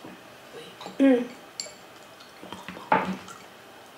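A spoon scrapes and clinks in a small dish.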